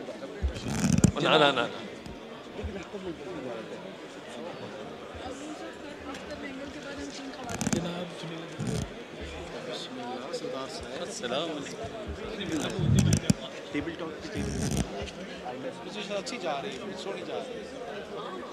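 Several men murmur and talk in a large echoing hall.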